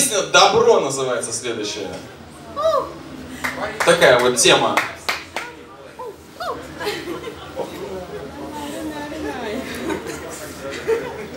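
A man sings loudly into a microphone over loudspeakers.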